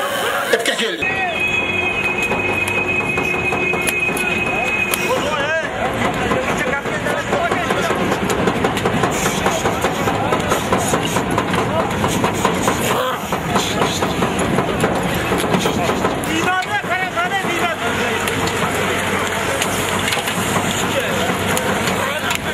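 Men shout close by amid a scrum of horses.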